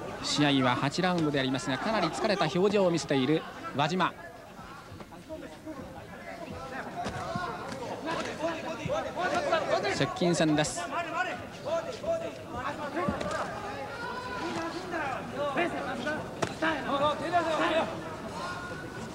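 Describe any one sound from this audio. A crowd murmurs and calls out.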